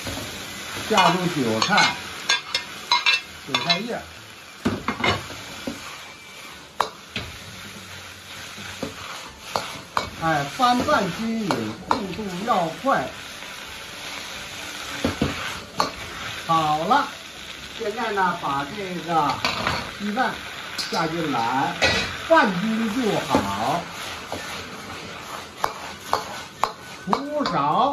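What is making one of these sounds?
Vegetables sizzle in a hot wok.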